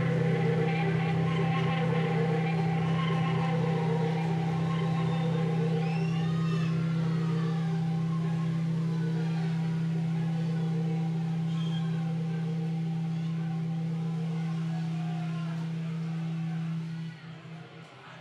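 A band plays a loud, held chord that rings out and then stops.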